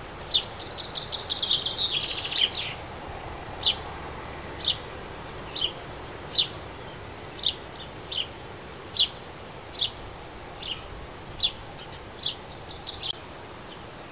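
A small bird chirps sharply and repeatedly close by.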